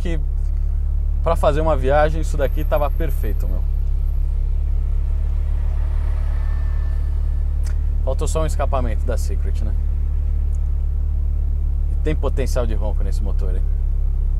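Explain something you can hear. A car engine hums low and steady inside the car.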